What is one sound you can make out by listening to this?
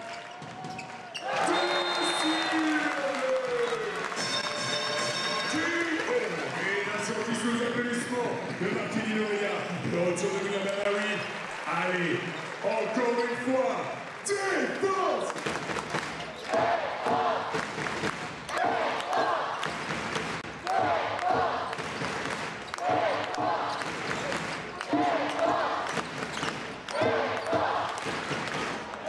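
A large crowd chants and cheers in an echoing arena.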